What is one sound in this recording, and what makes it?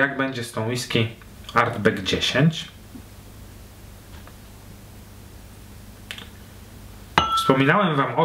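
Liquid pours softly into a glass.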